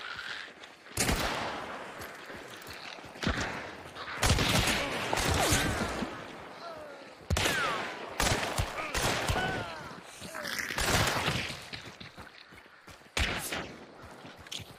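Gunshots boom loudly, several times, and echo.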